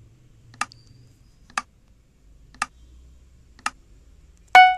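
A game timer ticks off a countdown.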